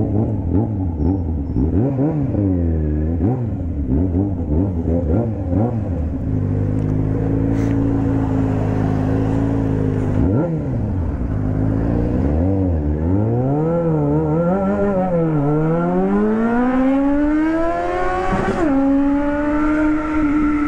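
A motorcycle engine revs up and down sharply, then climbs steadily as the bike speeds up and shifts gear.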